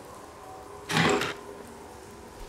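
A heavy chest lid thuds shut.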